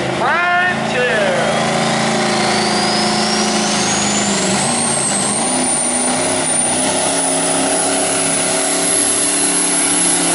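A diesel engine's pitch rises and whines higher as the truck pulls.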